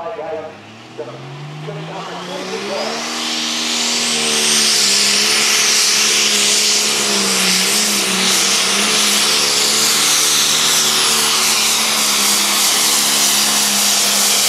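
A tractor engine revs up and roars loudly and steadily.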